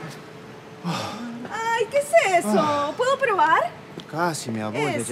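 A young woman laughs and speaks cheerfully.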